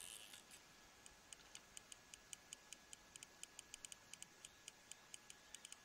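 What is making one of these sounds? A fishing reel ticks softly in quick, uneven clicks.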